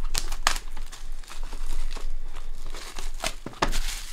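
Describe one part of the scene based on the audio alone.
Plastic wrap crinkles as hands tear it off a box.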